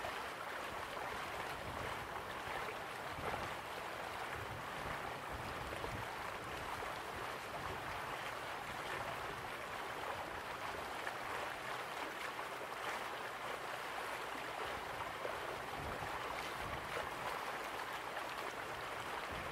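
A small waterfall splashes steadily into a pool.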